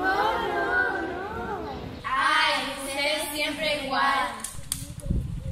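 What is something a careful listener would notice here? Young girls sing together close by.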